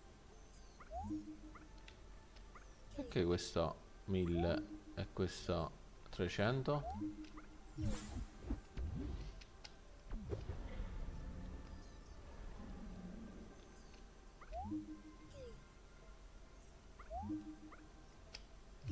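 Short electronic chimes sound as game prompts pop up.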